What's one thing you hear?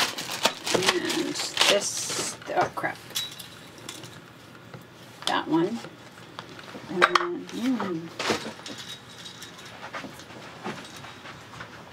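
Cards shuffle and slide on a table.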